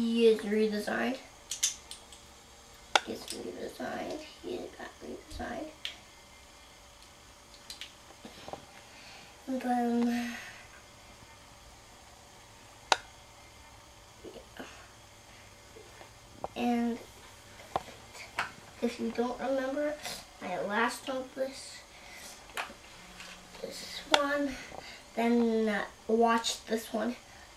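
Small plastic toy pieces click and rattle in a boy's hands.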